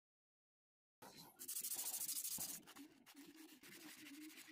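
Sandpaper rasps against wood.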